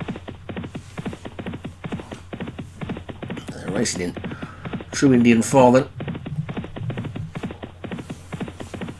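Hooves pound rapidly on turf as horses gallop.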